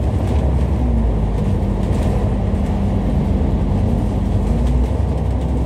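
Traffic passes by on a busy road.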